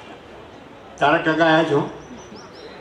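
An elderly man speaks calmly into a microphone, heard over loudspeakers.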